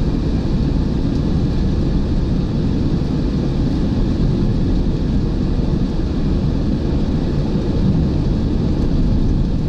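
Wind rushes loudly past an open car.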